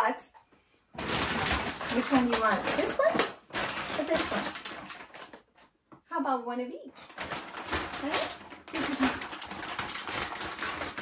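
A paper bag rustles and crinkles.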